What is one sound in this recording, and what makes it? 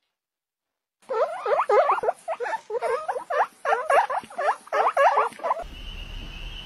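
Guinea pigs squeak loudly and repeatedly.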